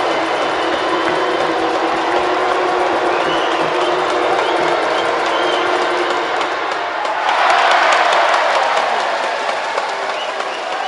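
A large crowd chants and cheers steadily in an echoing arena.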